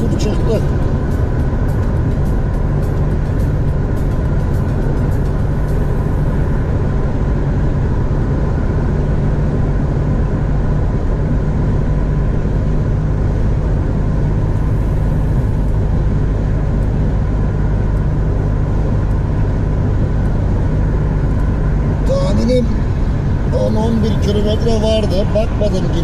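A car engine hums steadily at highway speed.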